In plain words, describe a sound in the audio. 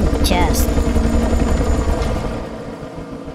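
A helicopter's rotor thumps loudly close by.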